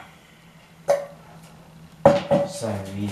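A metal pot clanks as it is handled.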